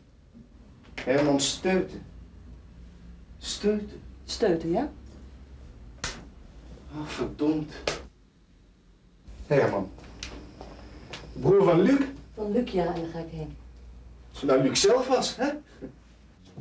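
A woman speaks with some irritation nearby.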